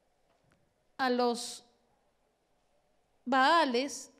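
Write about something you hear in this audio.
A middle-aged woman speaks with feeling into a microphone in a large echoing hall.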